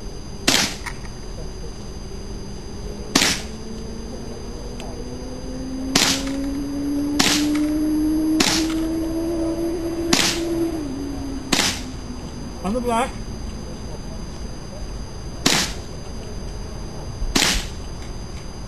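A rifle fires single shots outdoors, one every few seconds.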